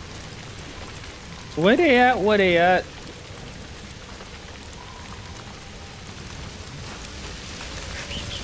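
Flames crackle nearby.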